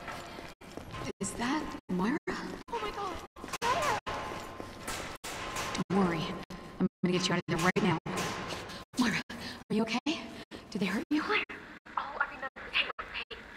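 A young woman speaks urgently and with concern.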